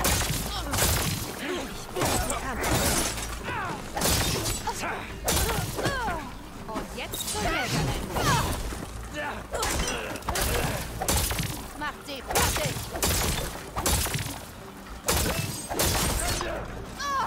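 Sharp electric crackles and bursts of combat effects ring out again and again.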